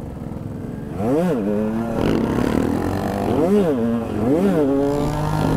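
Another motorcycle engine rises and falls in pitch nearby.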